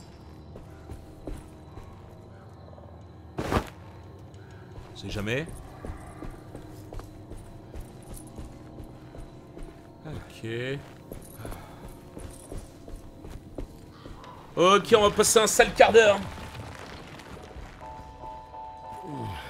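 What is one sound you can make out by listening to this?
Footsteps crunch slowly.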